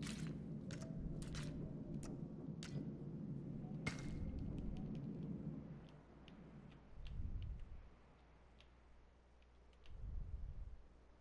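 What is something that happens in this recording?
Short interface clicks tick now and then.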